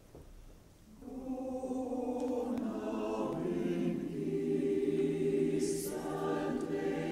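A choir sings.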